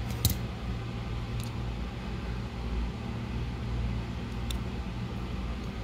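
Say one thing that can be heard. Wire cutters snip a thin wire.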